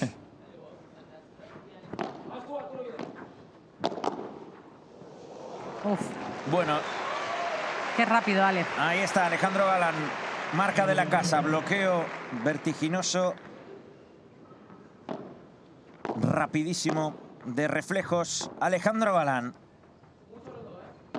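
Padel rackets strike a ball with sharp pops.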